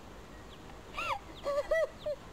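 A woman wails and sobs.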